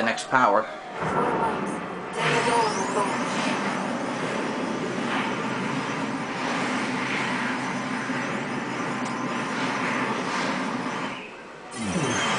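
A loud rushing whoosh swirls steadily.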